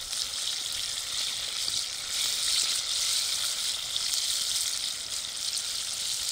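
Hot oil sizzles and crackles steadily in a pan.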